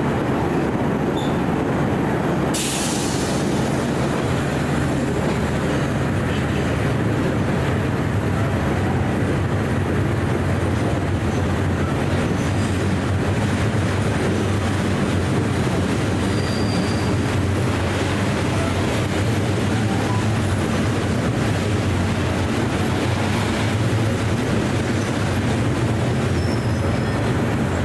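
An electric train rumbles steadily along the tracks.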